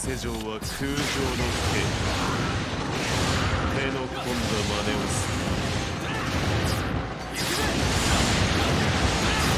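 Swords slash and clang in a fierce battle.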